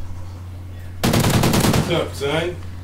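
Rapid gunfire rattles in a short burst.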